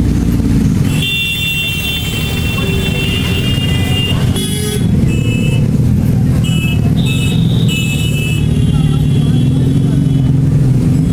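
A motorcycle engine hums steadily while riding along a street.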